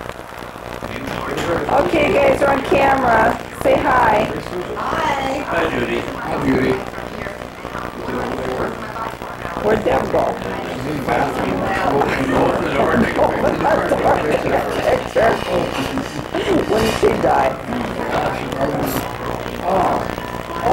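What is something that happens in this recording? Several men talk and laugh together close by.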